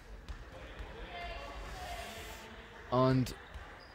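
A ball bounces on a hard floor in an echoing hall.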